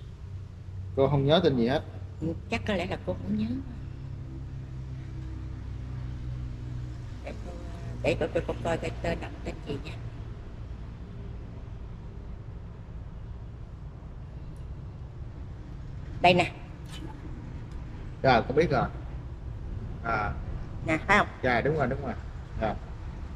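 An older woman speaks calmly and close to a clip-on microphone, pausing often.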